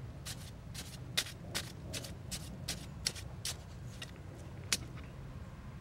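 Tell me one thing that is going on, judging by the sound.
A knife blade taps and stabs sharply into stone.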